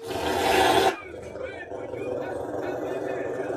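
A dog whines in short high yelps.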